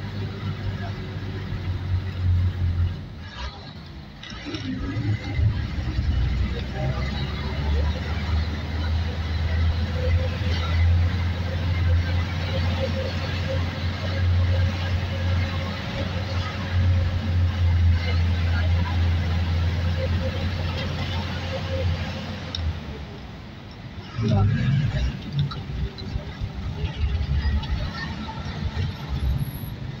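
A vehicle engine rumbles steadily as it drives along a winding road.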